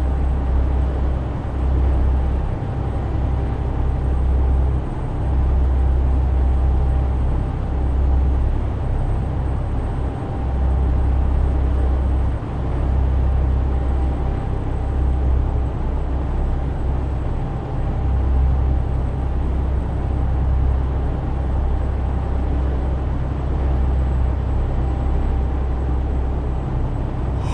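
A truck engine hums low and steady from inside the cab.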